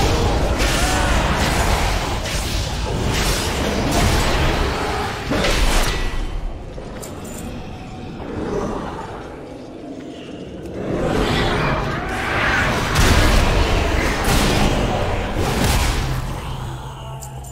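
Game combat effects clash and burst loudly.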